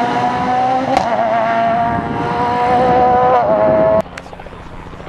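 A rally car engine roars loudly close by, revving as it shifts gears.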